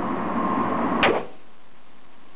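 A handgun fires a single loud shot that echoes briefly.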